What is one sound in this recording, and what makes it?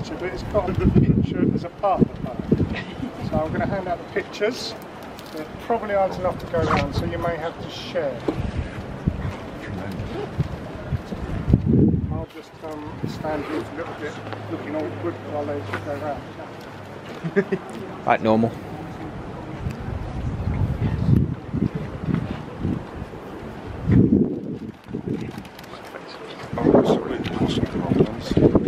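An elderly man reads aloud outdoors, close by.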